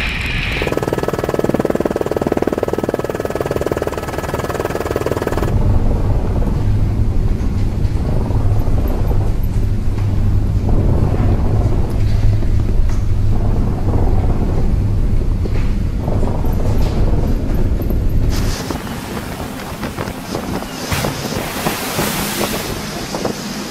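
Heavy waves crash and splash against a ship's hull.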